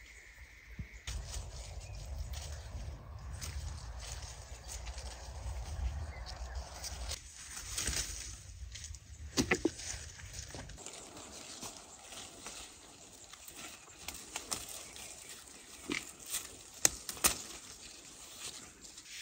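Cherry stems snap as they are picked from a branch.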